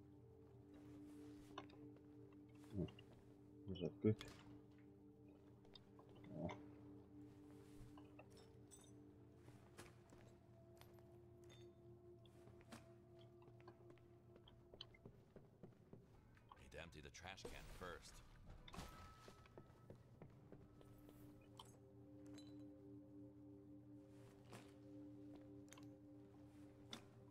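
Litter drops into a plastic bag with soft rustles and thuds.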